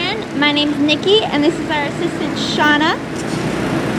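A man speaks loudly outdoors.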